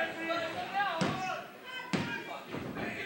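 A body thuds heavily onto a wrestling ring mat.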